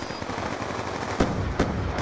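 A gun fires sharp, loud bursts of shots.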